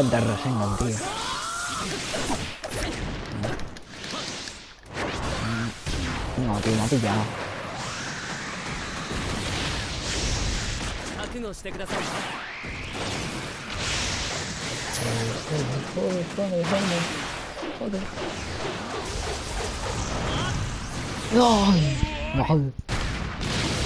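A young male game character shouts during the fight.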